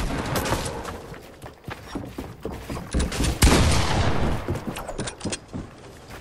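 Wooden walls and ramps knock and clatter as they are built.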